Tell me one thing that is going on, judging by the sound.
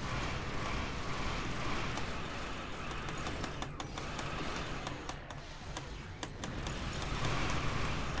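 Game laser weapons fire and zap in quick bursts.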